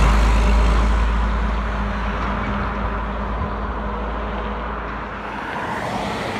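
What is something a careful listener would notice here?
A diesel truck engine rumbles nearby.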